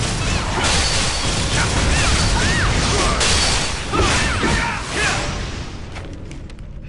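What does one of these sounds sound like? Magic spells burst and crackle loudly in a game battle.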